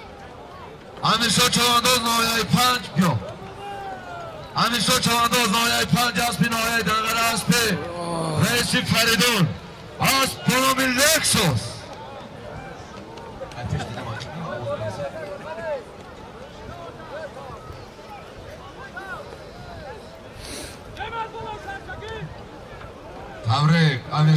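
A man announces loudly and excitedly over loudspeakers outdoors.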